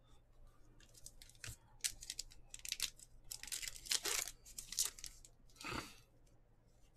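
Trading cards rustle and snap as they are shuffled by hand.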